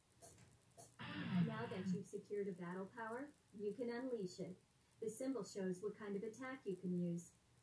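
Rock music plays through a television speaker.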